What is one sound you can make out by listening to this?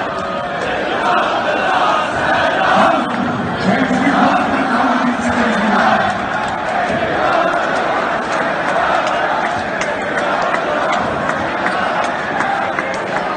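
A large crowd cheers and chatters loudly in a big echoing arena.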